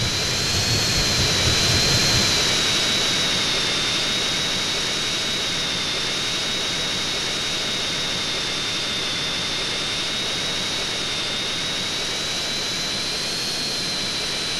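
A jet engine roars steadily with a high whine.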